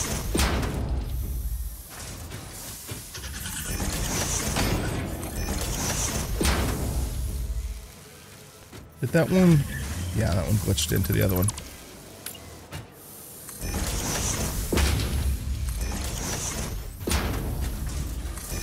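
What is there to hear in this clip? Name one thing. Sparks crackle and buzz in repeated bursts.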